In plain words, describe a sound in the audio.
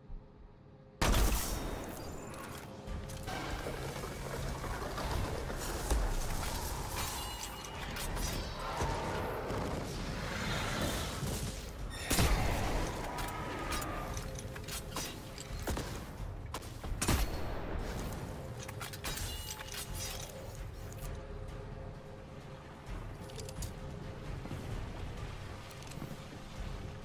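Energy weapons fire in rapid bursts with sharp zaps.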